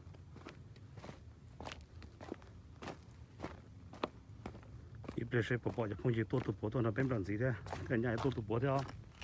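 Footsteps crunch over loose stones at a steady walking pace.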